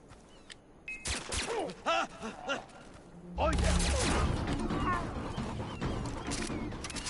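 Gunshots ring out in bursts.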